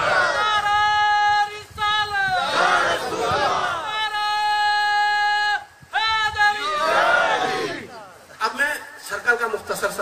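An elderly man chants in long, drawn-out tones through a microphone and loudspeaker.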